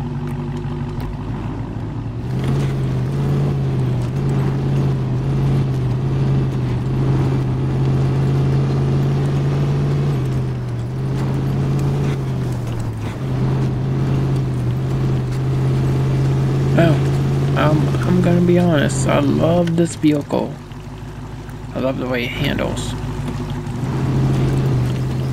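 A truck engine rumbles low and steady, straining as it climbs.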